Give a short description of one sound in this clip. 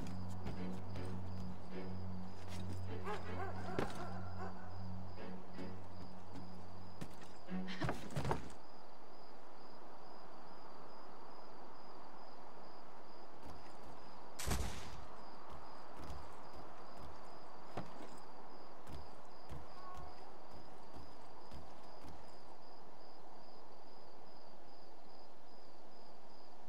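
Footsteps patter softly on a roof.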